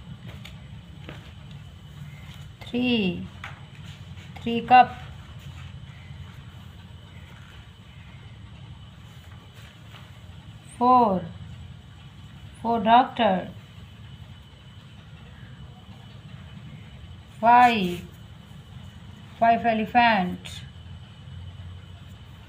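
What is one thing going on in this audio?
A paintbrush strokes softly on paper.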